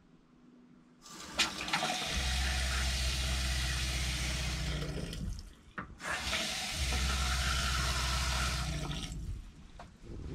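Water runs from a tap and splashes into a metal sink.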